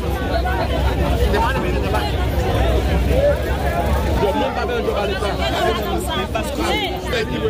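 A crowd of men and women talk and shout over one another outdoors.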